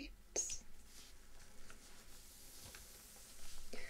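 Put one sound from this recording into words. Fingers slide and rustle softly over stiff paper.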